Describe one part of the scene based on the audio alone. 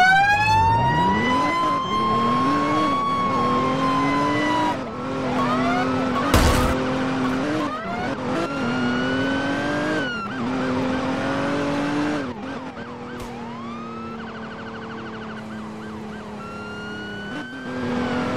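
A car engine revs and whines, rising and falling in pitch as it speeds up and shifts gears.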